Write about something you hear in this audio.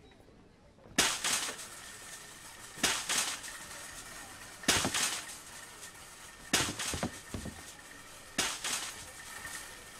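A metal shopping cart rattles as it rolls over a hard floor.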